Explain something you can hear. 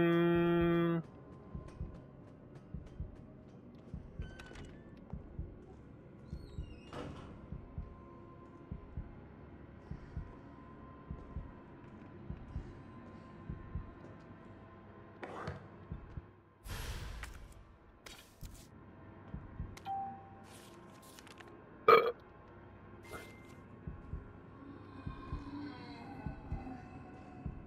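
Footsteps clatter on metal stairs and then thud on a hard floor at a steady walking pace.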